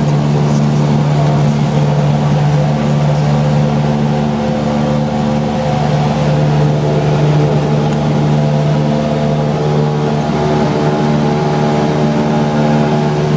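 A small plane's propeller engine drones loudly and steadily from inside the cabin.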